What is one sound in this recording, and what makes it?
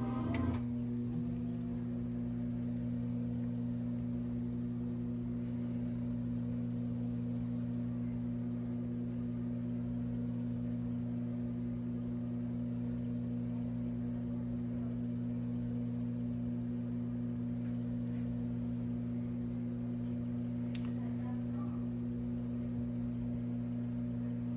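A steady low electrical hum drones throughout.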